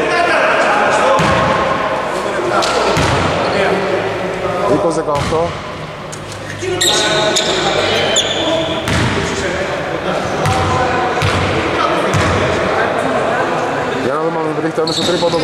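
Voices talk and call out across a large echoing gym.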